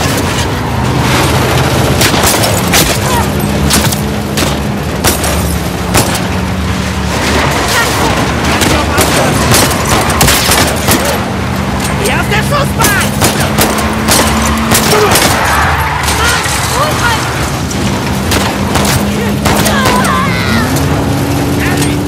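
Gunshots crack rapidly, over and over.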